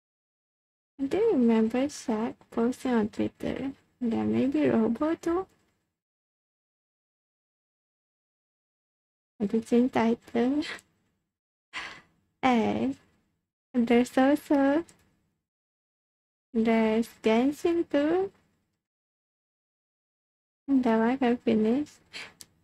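A young woman speaks cheerfully and closely into a microphone, in short bursts with pauses.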